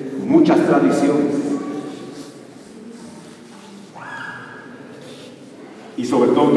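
A man speaks through a microphone, his voice echoing in a large hall.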